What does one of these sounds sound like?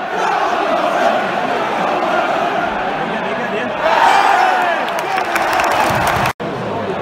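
A large stadium crowd chants and sings loudly, all around.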